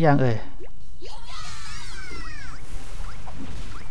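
Fiery meteors crash down and explode.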